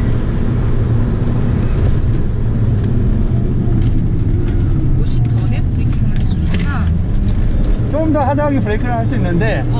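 A car engine roars steadily from inside the car.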